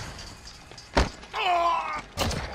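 A knife stabs into a body with a thud.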